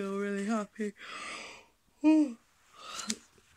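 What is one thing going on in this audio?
A young woman groans with a strained voice.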